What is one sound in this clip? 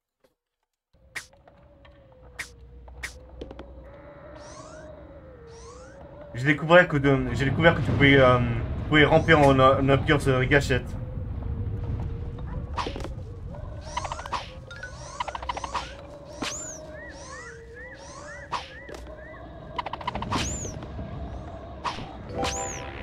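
Light, bouncy game music plays with chimes and jingles.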